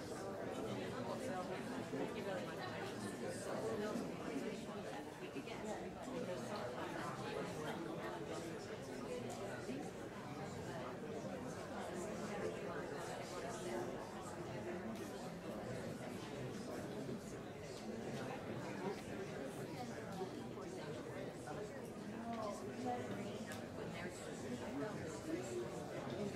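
A crowd of people chatters in a large room.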